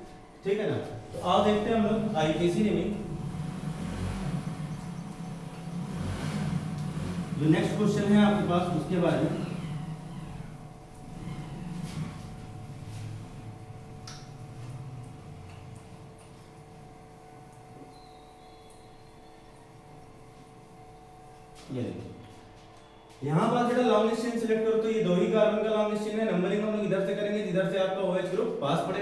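A man speaks in a lecturing tone, close by.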